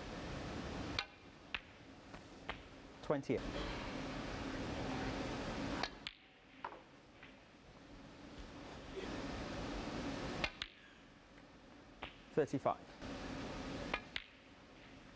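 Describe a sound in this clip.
A cue tip strikes a snooker ball.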